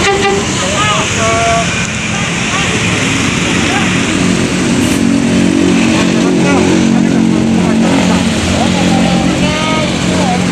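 A bus engine rumbles loudly close by as the bus pulls past.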